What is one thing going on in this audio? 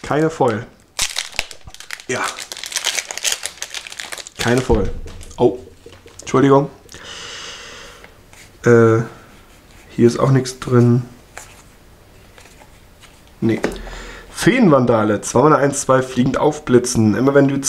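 Playing cards rustle and slide against each other as they are handled.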